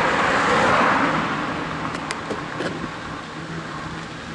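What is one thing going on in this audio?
A car passes close by and fades into the distance.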